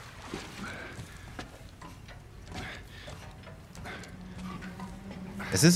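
Boots clank on metal ladder rungs as someone climbs.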